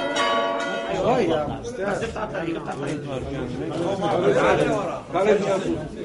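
Men chant together in an echoing room.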